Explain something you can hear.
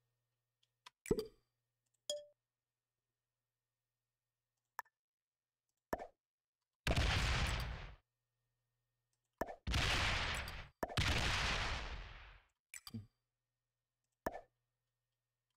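Game sound effects whoosh and chime.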